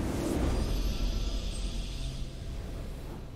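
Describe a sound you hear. Triumphant video game music swells and then fades.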